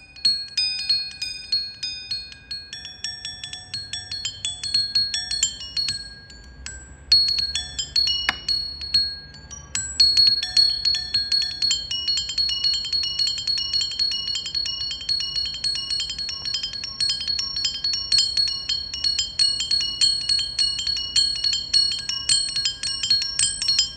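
A man plays a quick, ringing melody on a marimba with mallets.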